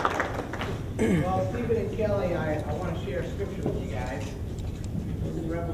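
Men and women talk and laugh together nearby.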